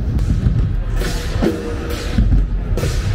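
A large crowd cheers and makes noise outdoors.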